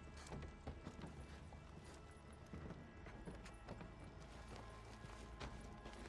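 Footsteps knock on a wooden ladder.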